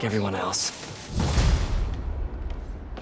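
A heavy thud sounds as something lands on a rooftop.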